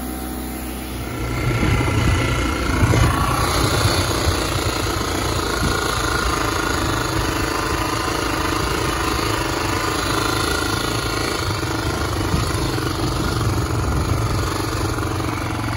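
A motorcycle engine runs and revs as the bike rides along.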